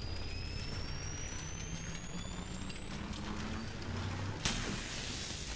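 A charging device hums with a steadily rising whine.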